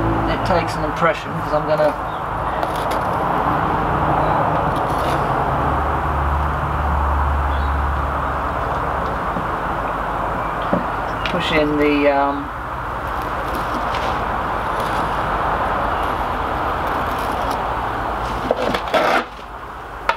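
A metal straightedge scrapes steadily across wet concrete.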